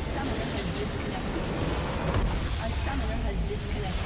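A structure in a game explodes with a deep boom.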